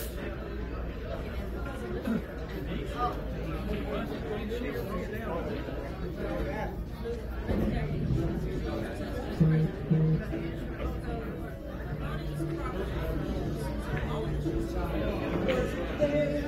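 A crowd of men and women chat throughout a busy room.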